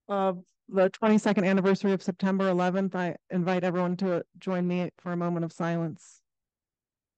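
A man speaks calmly through a microphone in an online meeting.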